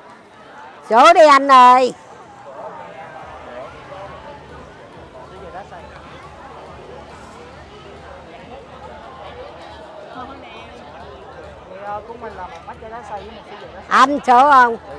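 A woman talks loudly close by.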